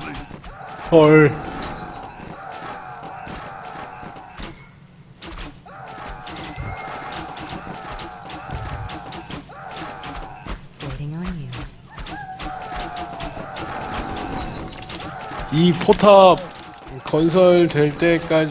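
Swords clash and weapons strike in a noisy battle.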